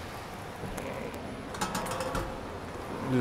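Footsteps clank on metal steps.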